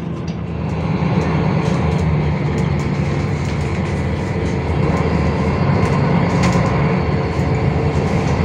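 A bus interior rattles and clicks as the bus rolls along.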